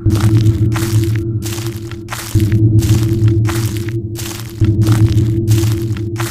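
Footsteps fall at a steady walking pace.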